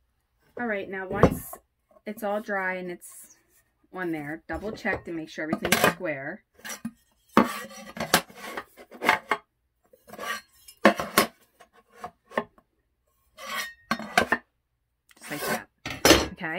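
Wooden boards knock and scrape against a table.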